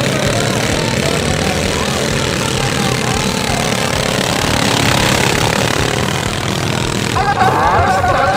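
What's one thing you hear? A small engine roars loudly as a vehicle races through mud.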